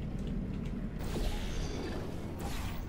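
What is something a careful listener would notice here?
A portal opens with a whoosh.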